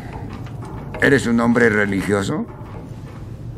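An elderly man asks a question in a low, gruff voice.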